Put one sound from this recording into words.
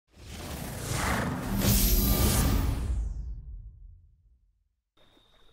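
A loud swelling electronic startup chime rings out and fades away.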